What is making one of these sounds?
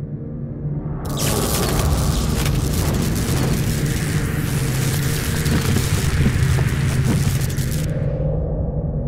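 Electricity crackles loudly.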